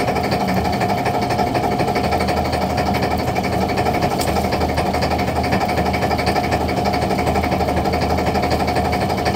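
A motorised line hauler hums and whirs steadily up close.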